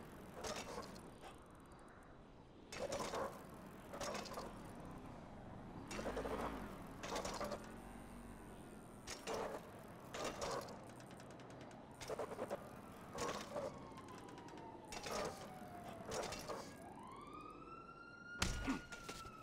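Bicycle tyres roll and thump on a wooden ramp.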